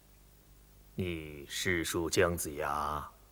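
An elderly man speaks slowly and solemnly.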